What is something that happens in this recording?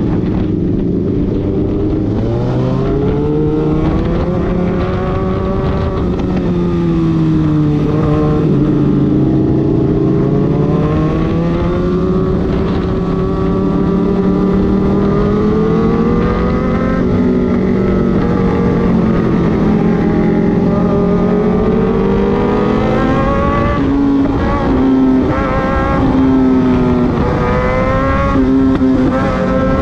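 A motorcycle engine hums steadily close by, rising and falling in pitch as it speeds up and slows down.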